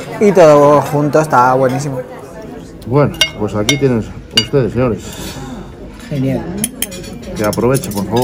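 Cutlery scrapes and clinks against a plate.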